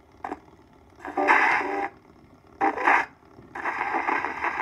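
A tenor voice sings through a gramophone horn, thin and crackly.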